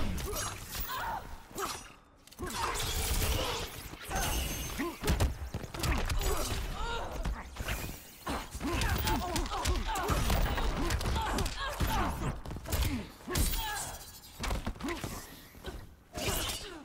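Punches and kicks thud and crack in a video game fight.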